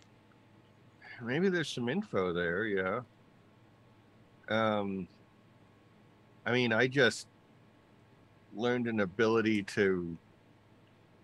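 A man speaks calmly in bursts, close to a microphone, as if on an online call.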